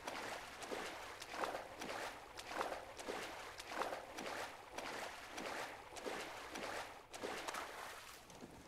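A swimmer splashes through water with rhythmic strokes.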